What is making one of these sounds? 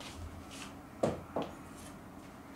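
A glass bottle knocks onto a wooden table.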